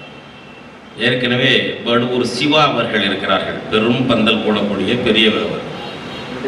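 An elderly man speaks forcefully into a microphone over a loudspeaker.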